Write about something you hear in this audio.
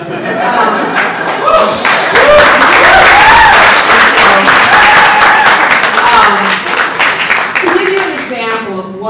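A crowd laughs and cheers loudly.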